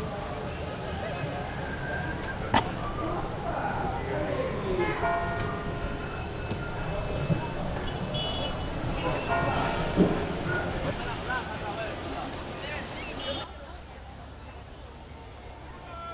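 Glasses and bottles clink.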